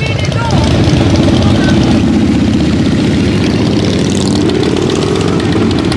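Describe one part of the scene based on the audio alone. A motorcycle engine rumbles loudly nearby.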